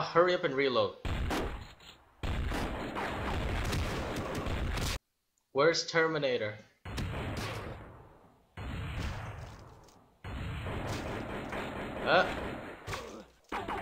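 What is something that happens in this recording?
Gunfire rattles from a video game.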